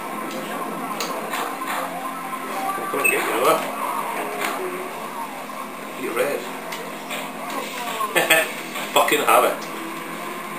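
Upbeat music plays through a television speaker.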